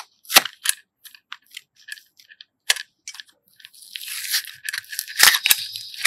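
Plastic clicks and rattles as a small case is handled.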